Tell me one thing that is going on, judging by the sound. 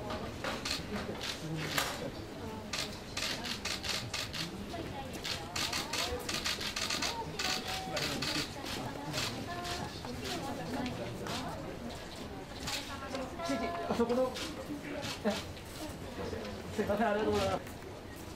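Men and women talk quietly nearby.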